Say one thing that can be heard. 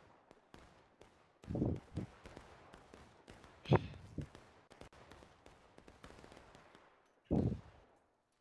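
Distant gunfire pops across an open field.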